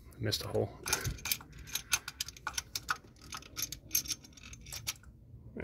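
Metal engine parts click and tap lightly as a hand moves them.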